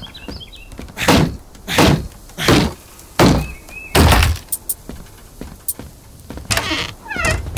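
Heavy footsteps thud on a wooden floor.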